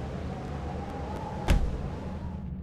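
A bright magical whoosh bursts out.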